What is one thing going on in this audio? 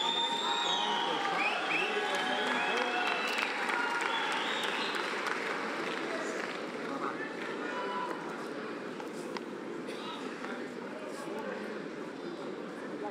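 A large crowd cheers and whistles in a big echoing arena.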